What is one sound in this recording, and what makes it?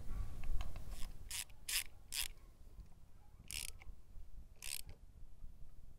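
A ratchet wrench clicks in short bursts.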